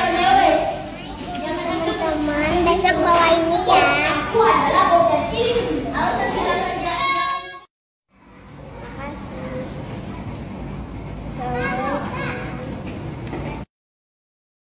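A young girl speaks close up, reading out in a clear voice.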